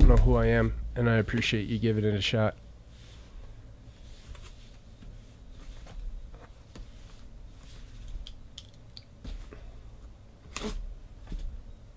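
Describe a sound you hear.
A cardboard box scrapes and thumps as it is turned over on a table.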